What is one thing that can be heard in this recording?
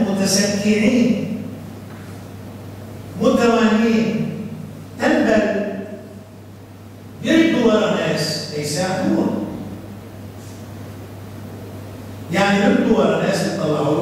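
An elderly man speaks calmly and slowly into a close microphone, with pauses.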